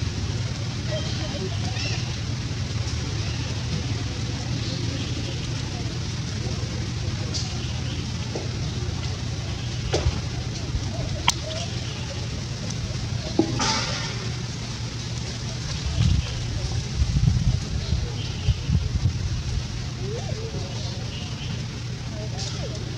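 A baby monkey suckles softly at its mother.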